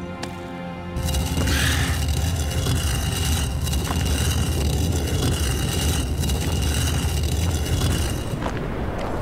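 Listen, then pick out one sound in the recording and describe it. A heavy stone block scrapes and rumbles as it is dragged along the ground.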